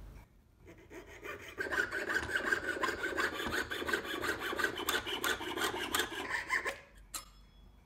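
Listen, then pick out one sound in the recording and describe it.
A fine saw rasps steadily through metal.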